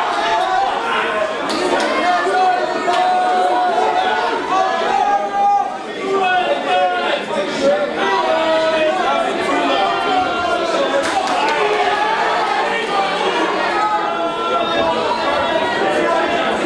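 Boxing gloves thump as punches land.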